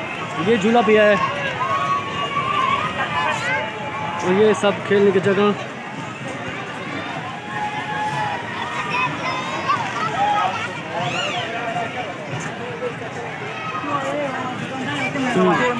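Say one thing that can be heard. A lively crowd chatters outdoors all around.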